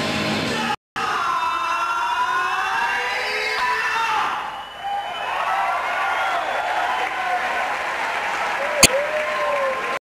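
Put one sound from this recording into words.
Electric guitar feedback squeals and wavers.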